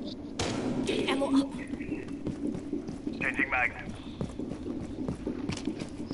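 Gunfire crackles in a video game.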